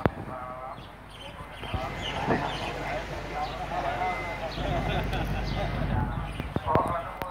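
Several men talk calmly nearby, outdoors.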